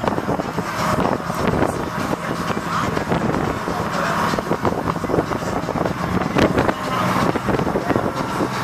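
Water splashes and churns against a moving boat's hull.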